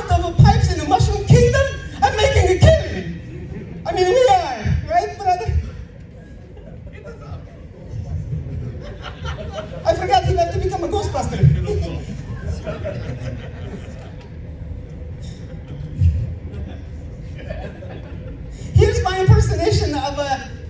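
A man speaks with animation into a microphone over loudspeakers in a large echoing room.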